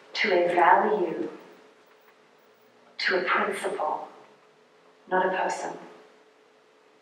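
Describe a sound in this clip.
A woman speaks calmly into a microphone in short phrases.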